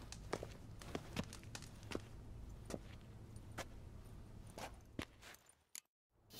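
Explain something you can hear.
Footsteps tap slowly on a stone floor.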